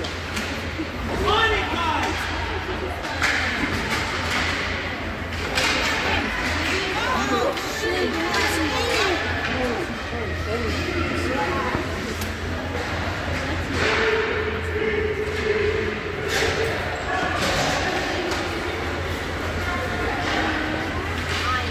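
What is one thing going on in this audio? Spectators in an echoing indoor rink shout and cheer.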